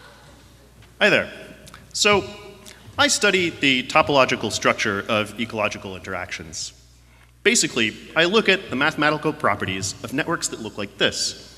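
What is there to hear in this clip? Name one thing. A man speaks calmly into a microphone, heard through loudspeakers in a large hall.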